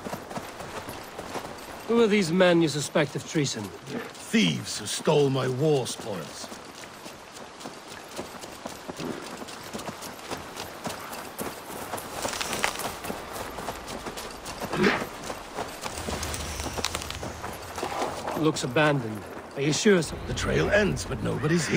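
Footsteps run over soft ground.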